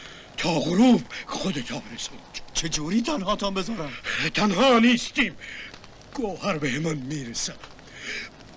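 An elderly man speaks in pain, close by.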